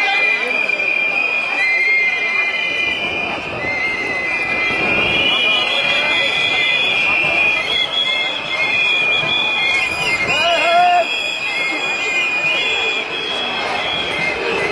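A large crowd of men and women chatters and calls out outdoors.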